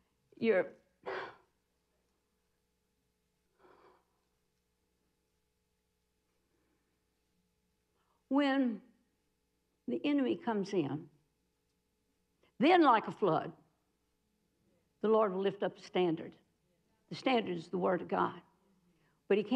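A middle-aged woman speaks with animation into a microphone, in short bursts with pauses.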